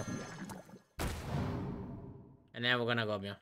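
A magical whoosh bursts out and fades.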